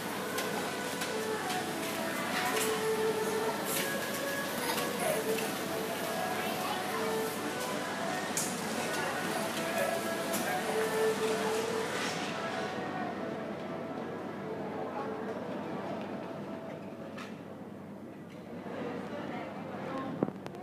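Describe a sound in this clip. Small children's shoes patter and tap on a hard floor in a large echoing hall.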